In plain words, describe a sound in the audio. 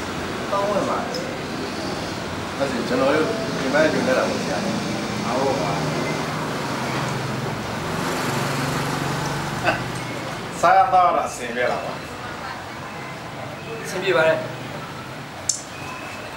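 Several men chat.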